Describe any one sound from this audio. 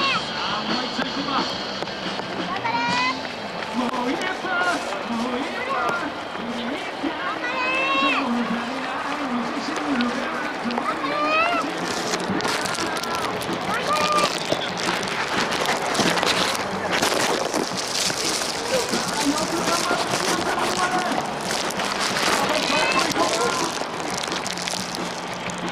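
Many running feet patter on a paved road.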